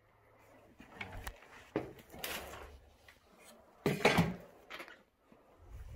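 A metal cabinet scrapes across a floor.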